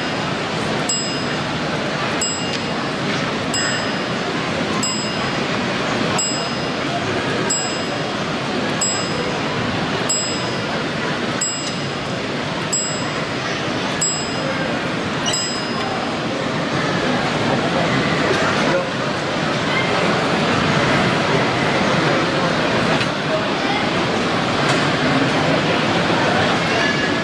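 A model train rumbles and clatters steadily along its track.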